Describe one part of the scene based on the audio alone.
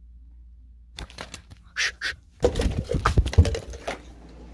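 Rustling and bumping sounds close to a phone microphone as the phone moves.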